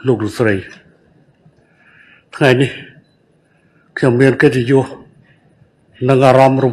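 An older man reads out a speech calmly into a microphone, in short phrases with pauses.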